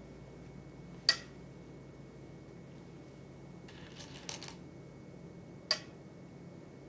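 A game stone clicks sharply onto a wooden board.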